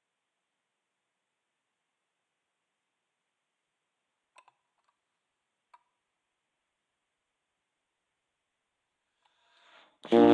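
A saxophone starts to play loudly, close by.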